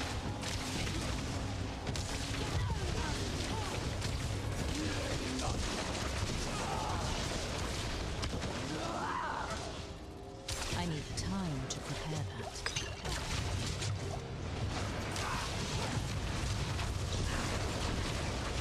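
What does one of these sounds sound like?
Electric spell effects crackle and zap in a video game.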